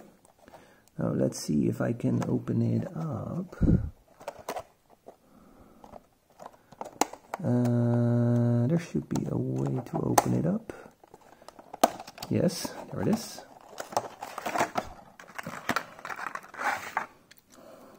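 A plastic box crinkles and clicks as it is handled.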